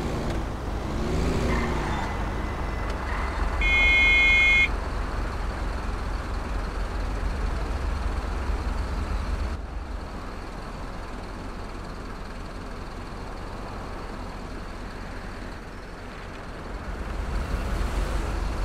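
A bus engine rumbles low as the bus moves through traffic.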